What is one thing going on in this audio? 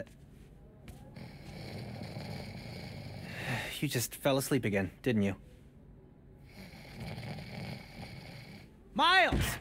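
A young man snores softly.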